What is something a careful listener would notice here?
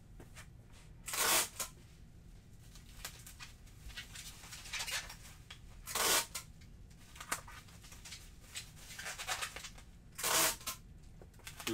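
Items rustle and clatter as a man rummages nearby.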